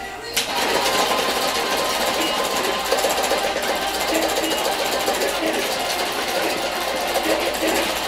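Loud rock music with distorted electric guitar plays from a television speaker.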